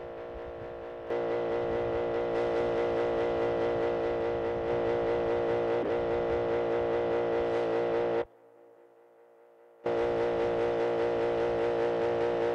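A truck engine drones steadily at high revs, cutting out briefly.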